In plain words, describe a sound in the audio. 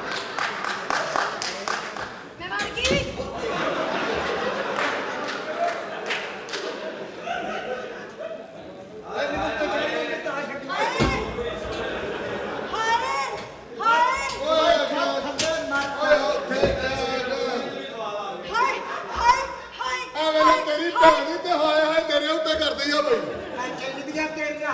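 Several men talk loudly and with animation.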